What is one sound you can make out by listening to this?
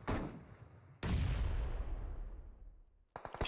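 A loud blast booms and slowly fades.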